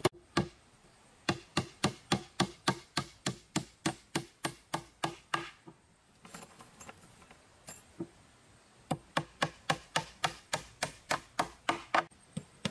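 A hammer taps a nail into wood in quick, steady blows.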